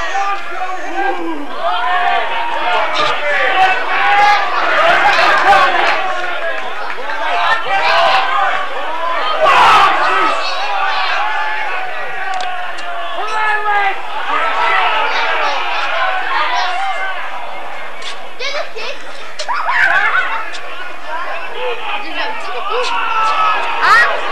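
A crowd of rugby spectators shouts and calls outdoors.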